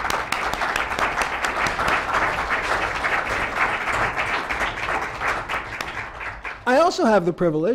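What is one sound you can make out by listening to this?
Many hands clap in steady applause that fades out.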